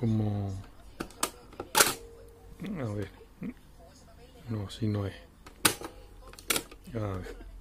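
Cassette deck buttons click sharply.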